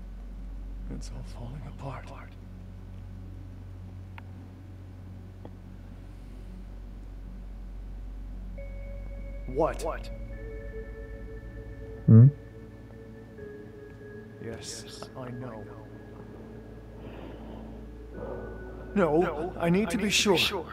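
A man speaks quietly and anxiously.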